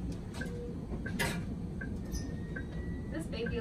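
A medical monitor beeps softly at a steady pace.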